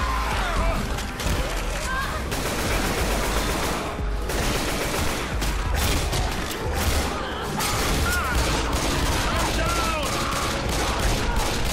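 Gunfire rattles rapidly and loudly.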